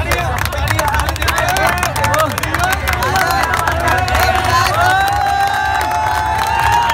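Hands clap rapidly in a lively crowd.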